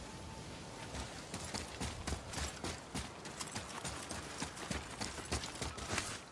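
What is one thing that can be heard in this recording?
Heavy footsteps crunch quickly over rough ground.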